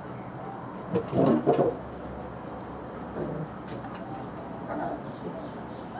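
Puppies yelp and whimper close by.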